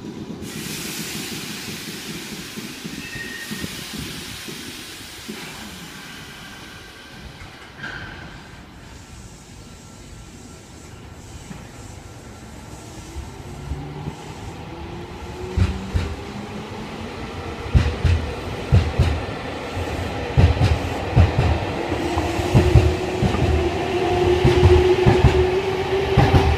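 A train rolls slowly into a station.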